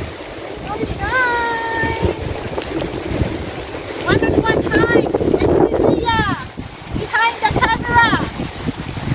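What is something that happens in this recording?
A young woman calls out cheerfully from a short distance outdoors.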